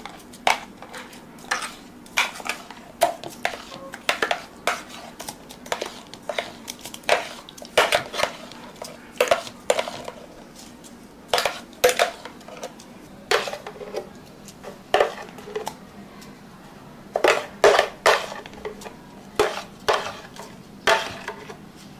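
A thick smoothie plops into a plastic cup.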